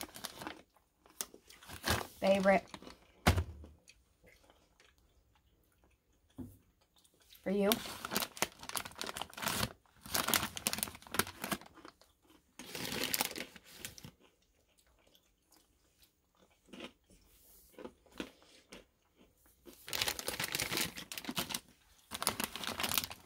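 A plastic snack bag crinkles and rustles as it is handled.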